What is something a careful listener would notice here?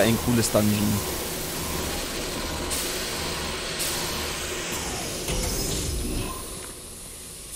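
Steam hisses loudly from a vent.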